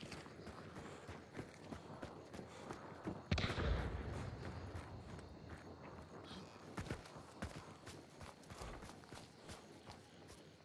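Footsteps crunch through leaves and undergrowth.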